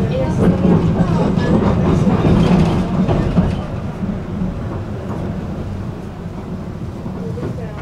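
Cars drive past close by on a road.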